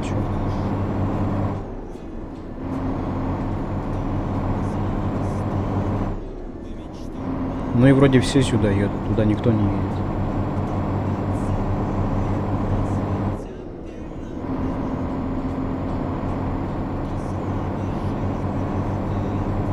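A truck's diesel engine drones steadily, dropping away briefly at each gear change.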